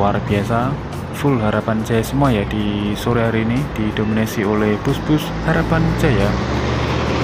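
A bus horn plays a loud, warbling melody over and over.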